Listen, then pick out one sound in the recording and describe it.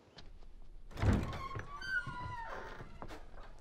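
Wooden doors creak as they are pushed open.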